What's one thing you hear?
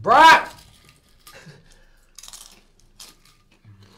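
A young man crunches on a chip.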